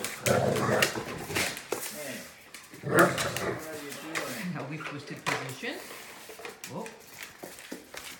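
Dog paws scuffle and thump on a hard floor.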